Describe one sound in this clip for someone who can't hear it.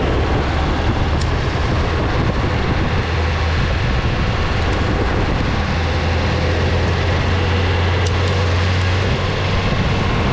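Skateboard wheels roll and rumble steadily on smooth asphalt.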